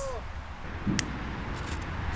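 A lighter clicks once.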